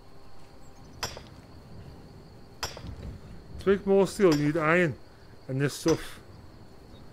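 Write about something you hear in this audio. A pickaxe strikes rock with sharp clanks.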